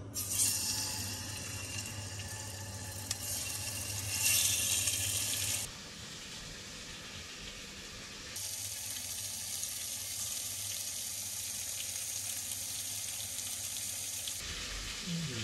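Chicken sizzles and crackles in a hot pan.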